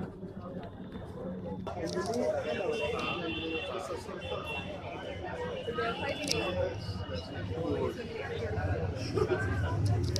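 A crowd of men and women chatter nearby indoors.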